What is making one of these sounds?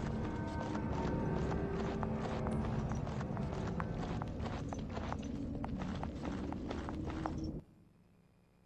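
Footsteps thud on stone steps.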